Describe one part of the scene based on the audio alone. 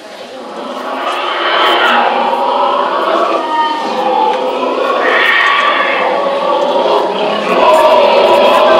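A large crowd cheers and shouts loudly, echoing in a big hall.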